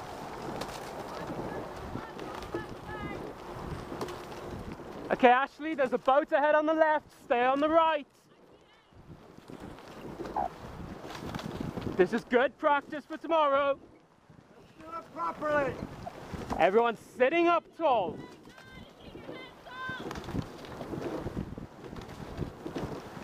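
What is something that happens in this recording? Bicycle tyres roll over a gravel path.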